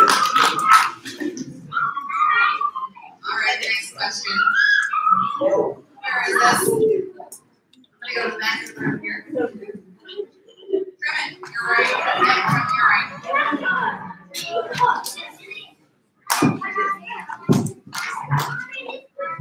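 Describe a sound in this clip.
A crowd of people chatters in a large room.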